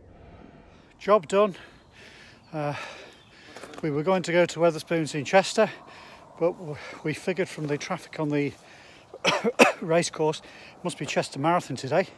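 A middle-aged man talks calmly and close to a phone microphone.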